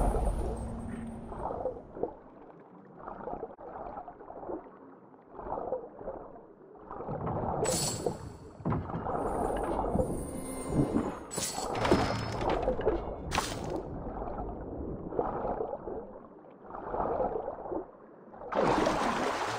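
Muffled strokes swish through the water underwater.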